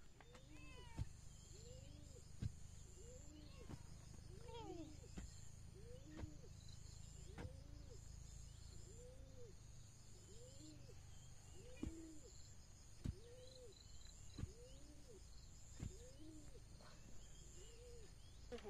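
A hoe thuds into packed soil.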